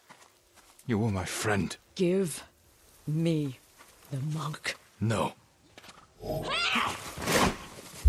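A man speaks calmly and gravely, close by.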